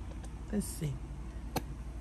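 A thick liquid squirts from a squeeze bottle.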